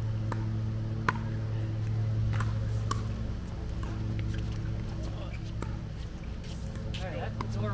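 Paddles hit a ball with sharp hollow pops.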